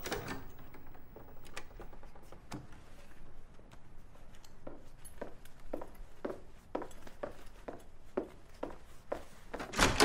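Footsteps tread softly on a hard floor.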